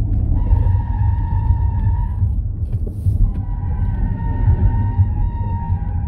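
Wind and road noise rumble loudly around a fast-moving car.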